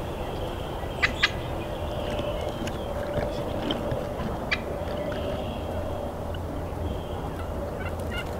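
A grouse calls with short clicks.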